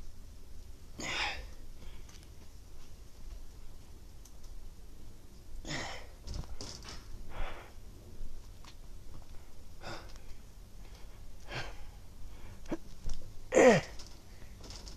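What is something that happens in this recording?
A young man exhales sharply with effort, close by.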